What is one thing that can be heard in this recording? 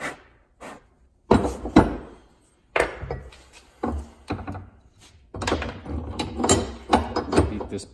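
Heavy metal parts clank and knock against a vise.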